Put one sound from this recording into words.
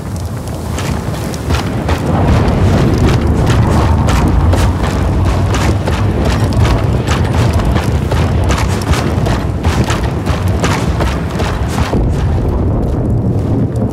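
Footsteps crunch steadily over snow and stone.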